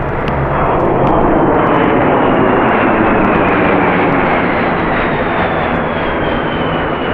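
Jet engines roar loudly overhead with a slowly falling whine.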